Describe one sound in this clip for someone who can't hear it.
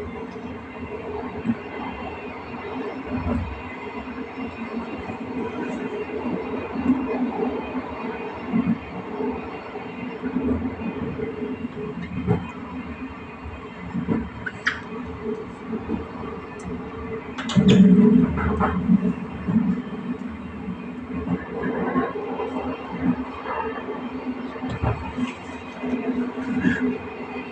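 Train wheels clatter over rail joints.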